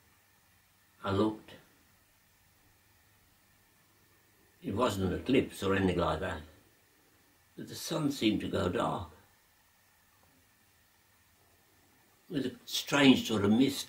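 An elderly man speaks slowly and calmly, close by, with pauses.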